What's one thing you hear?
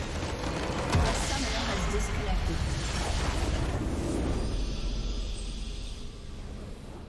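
A loud explosion booms and rumbles, then slowly fades.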